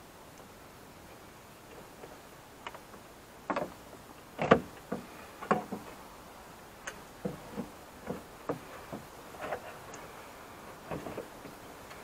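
A cable rustles and taps against metal.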